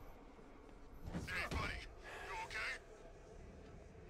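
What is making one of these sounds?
A heavy punch thuds.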